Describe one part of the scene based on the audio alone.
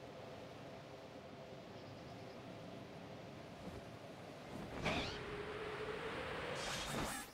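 Wind rushes steadily past during flight.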